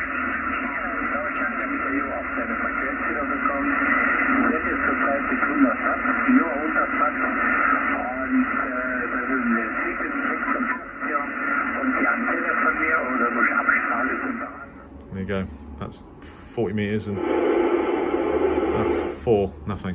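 Voices come through a radio loudspeaker with a thin, crackly sound.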